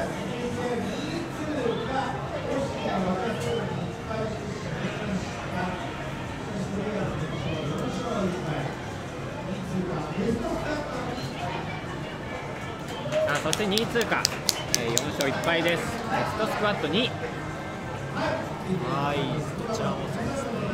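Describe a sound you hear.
A crowd of young men and women chatter together indoors.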